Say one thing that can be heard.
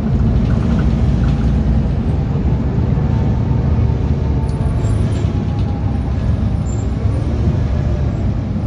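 A bus engine rumbles steadily while the bus drives along.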